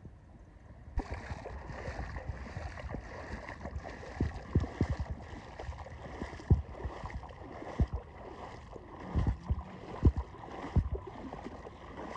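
Gentle water laps and splashes around feet wading in the shallows.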